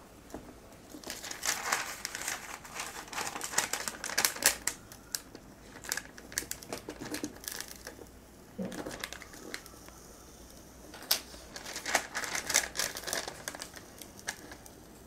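A plastic film crinkles and rustles as it is peeled back.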